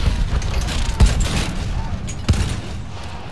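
A heavy metal gun breech clanks shut as a shell is loaded.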